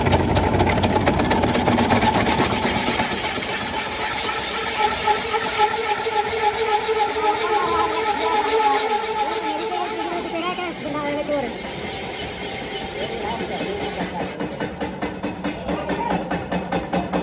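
A cutting tool scrapes and chatters against turning metal.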